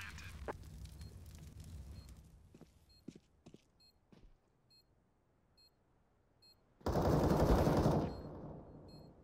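A planted bomb beeps at a steady pace.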